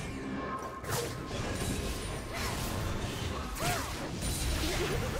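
Hits and blasts thump in quick bursts.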